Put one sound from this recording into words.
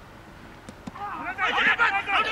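A bat strikes a cricket ball with a sharp knock.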